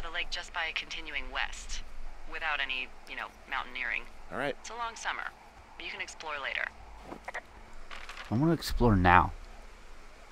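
A woman talks casually over a crackly walkie-talkie radio.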